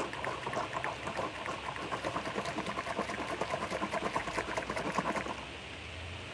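A woman gulps liquid from a jug.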